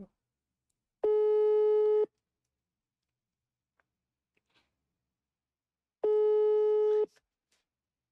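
A phone gives a long, steady beep twice.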